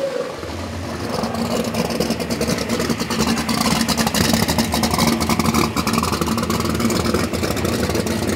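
A drag racing car's engine idles with a lumpy rumble.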